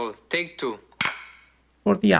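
A clapperboard snaps shut with a sharp clap.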